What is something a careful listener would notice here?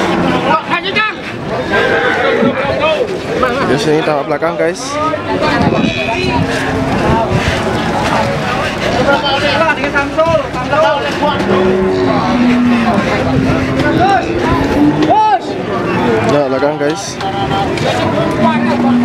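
A crowd of men chatter loudly all around outdoors.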